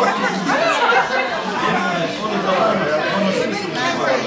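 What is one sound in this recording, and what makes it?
Young men laugh nearby.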